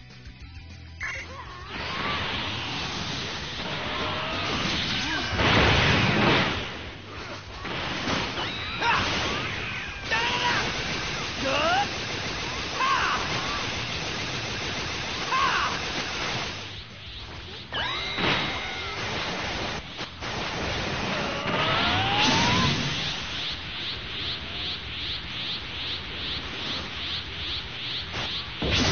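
Energy blasts and explosions crackle and boom in a video game battle.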